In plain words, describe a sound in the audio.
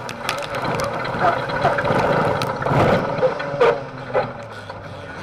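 The car jolts and bangs over rough ground.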